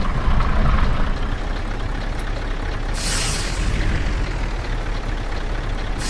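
A bus rolls past close by.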